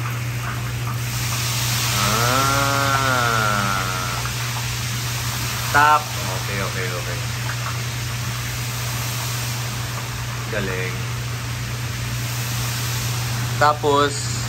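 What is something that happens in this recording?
Batter sizzles loudly in a hot wok.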